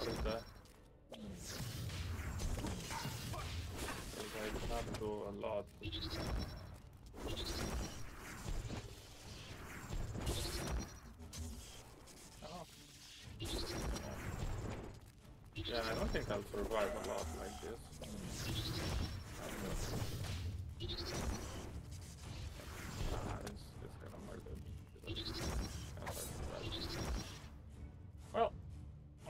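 Blades slash and strike in quick bursts.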